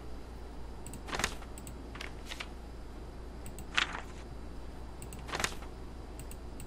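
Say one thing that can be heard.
Paper pages of a notebook flip over several times.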